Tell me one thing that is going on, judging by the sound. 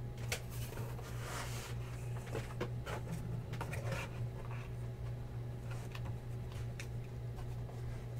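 A cardboard box scrapes and rustles as cards are packed into it.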